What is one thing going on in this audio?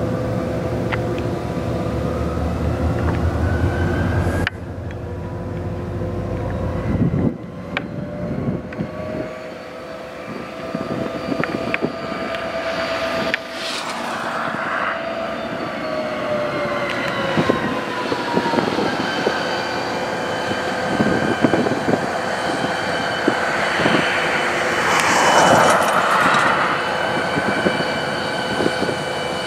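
A diesel locomotive engine rumbles steadily nearby.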